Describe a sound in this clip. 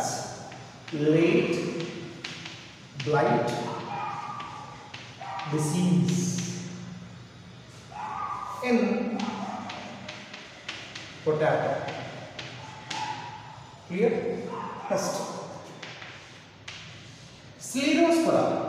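A man speaks steadily and clearly, close by in a room with some echo.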